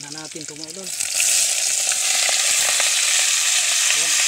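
Food sizzles loudly in hot oil.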